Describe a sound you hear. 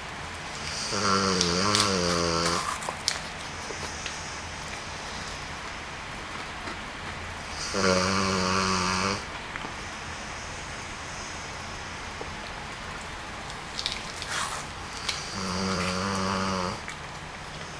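A dog lets out long, low groaning moans a few times, close by.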